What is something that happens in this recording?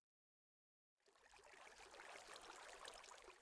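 Water rushes and splashes steadily.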